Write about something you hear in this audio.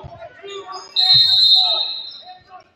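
A whistle blows shrilly.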